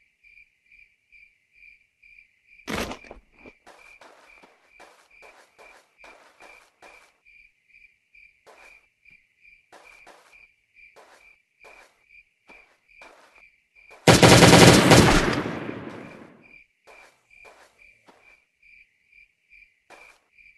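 Footsteps patter steadily as a game character walks.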